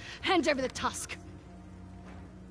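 A woman speaks sharply and tensely.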